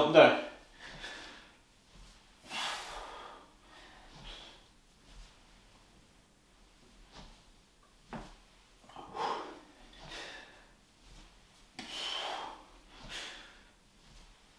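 A man breathes out hard with each sit-up.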